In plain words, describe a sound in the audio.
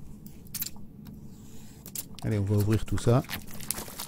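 A blade scrapes and slits through a paper seal.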